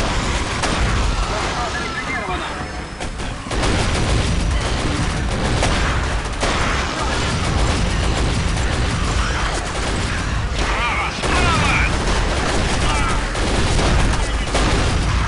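Guns fire in rapid bursts, loud and close.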